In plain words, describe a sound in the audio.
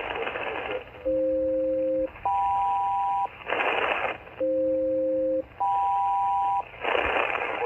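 A radio receiver sounds a series of pairs of steady electronic tones, each pair held for about a second.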